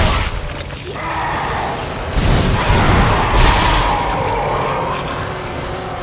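A monster screeches and snarls.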